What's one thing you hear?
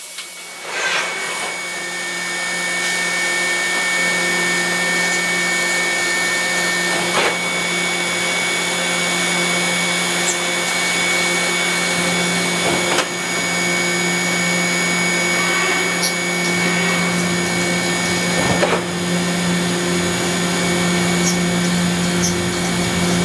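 Coolant sprays and splashes inside a machine enclosure.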